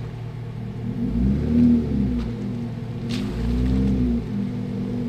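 A truck engine rumbles and revs as it drives slowly closer on a dirt track.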